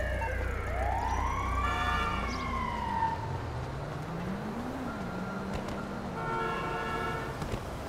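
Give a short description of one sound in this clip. Footsteps run on pavement and up stone steps.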